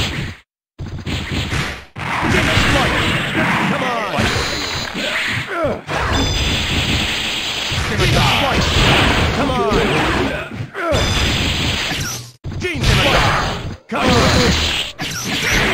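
Fighting game hits land with sharp, punchy impacts.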